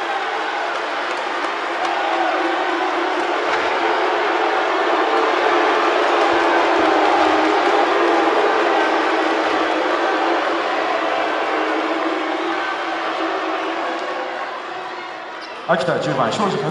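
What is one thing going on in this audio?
A large crowd cheers and chants steadily in an echoing arena.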